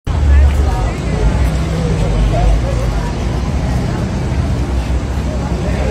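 A crowd of men and women chatter and call out close by outdoors.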